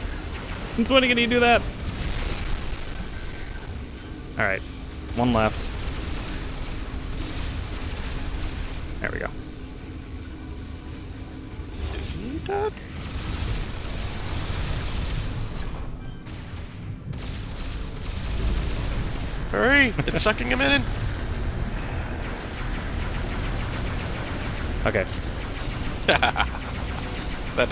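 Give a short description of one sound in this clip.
Sci-fi blasters fire in sharp zaps and bursts.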